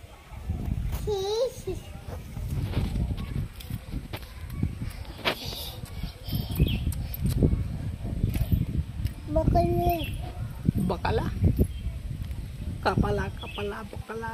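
A toddler babbles and calls out close by.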